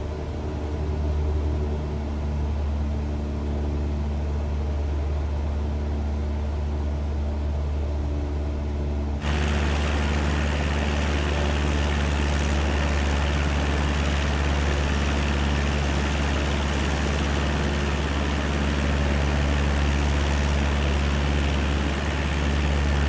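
A small propeller plane's engine drones steadily, growing louder and harsher partway through.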